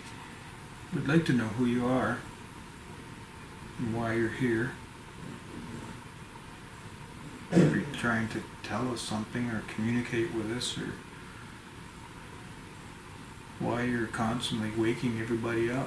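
A man speaks calmly in short bursts.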